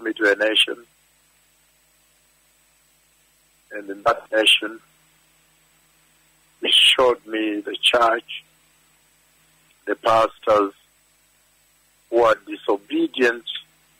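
A man preaches forcefully into a microphone in short, emphatic bursts with pauses between them.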